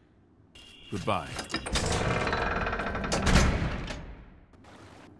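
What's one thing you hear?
A heavy door creaks open and shuts.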